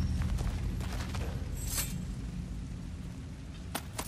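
A fire crackles nearby.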